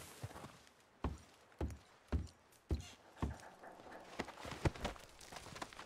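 Boots thud on wooden stairs.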